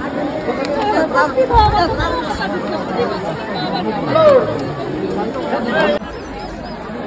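A large crowd chatters and shouts loudly close by outdoors.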